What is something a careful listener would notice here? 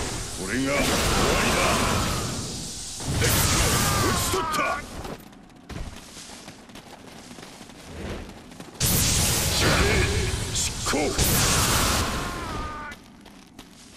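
Blades clash and strike in quick hits.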